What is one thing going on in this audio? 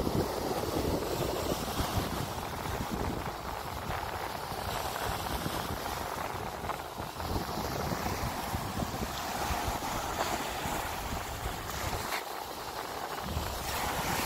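Small waves wash up onto a sandy shore and hiss as they draw back.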